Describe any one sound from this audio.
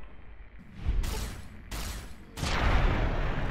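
Loud gunshots fire in quick succession and echo.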